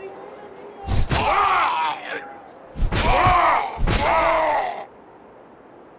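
Creatures cry out and growl in a fight.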